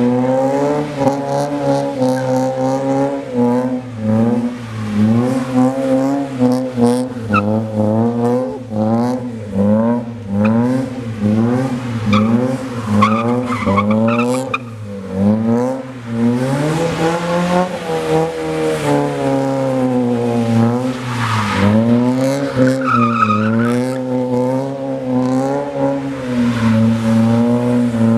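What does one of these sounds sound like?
A car engine revs hard, rising and falling over and over.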